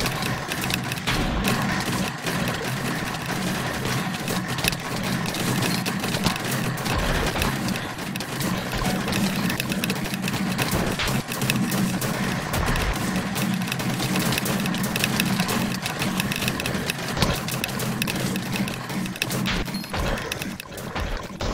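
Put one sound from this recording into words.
Gunshots crack rapidly and repeatedly in a video game.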